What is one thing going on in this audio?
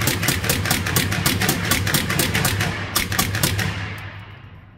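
A rifle fires rapid bursts of loud, echoing shots at close range.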